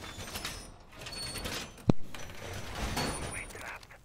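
A heavy metal panel clanks into place against a wall.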